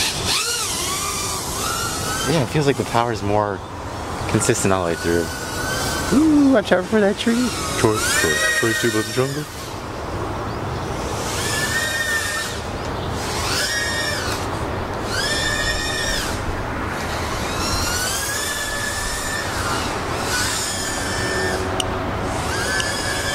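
A small drone's motors whine, rising and falling sharply in pitch as it races and turns.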